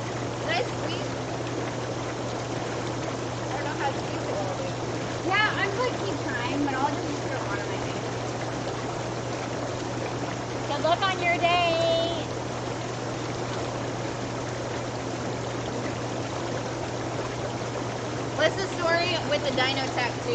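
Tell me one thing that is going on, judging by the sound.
Water bubbles and churns steadily in a hot tub.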